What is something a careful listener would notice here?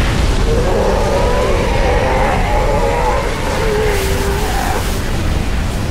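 A plasma blast bursts loudly nearby.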